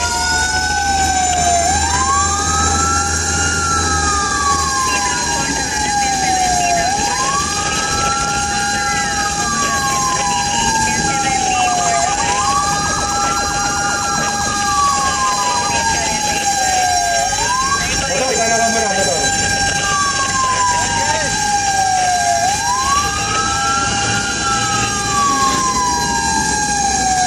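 A vehicle engine hums steadily with road noise.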